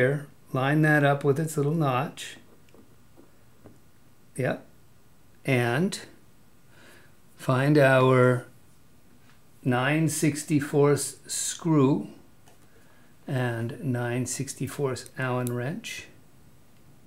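A man talks calmly and clearly into a nearby microphone, in short bursts with pauses.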